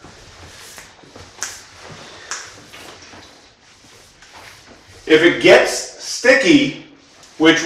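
A mop swishes across a tiled floor.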